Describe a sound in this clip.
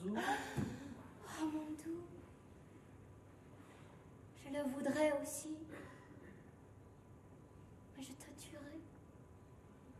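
A young woman sobs and wails in anguish close by.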